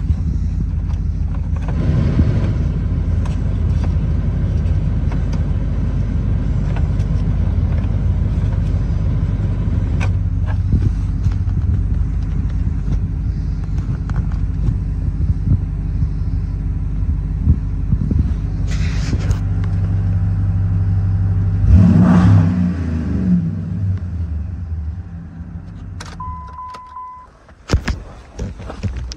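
A car engine idles with a steady low rumble.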